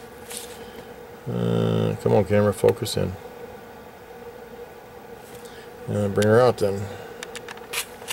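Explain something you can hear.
Small metal pliers click and scrape against a circuit board.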